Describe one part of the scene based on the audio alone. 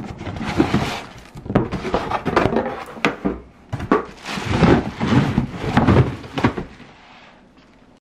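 Cardboard box flaps scrape and rustle as a box is opened.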